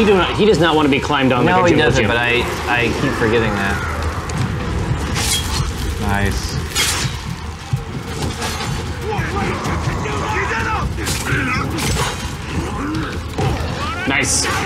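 Several men talk with animation through microphones.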